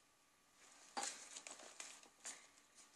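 Paper pages rustle and crinkle as they are turned by hand.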